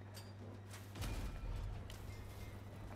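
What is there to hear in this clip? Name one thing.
A gun fires with a booming blast.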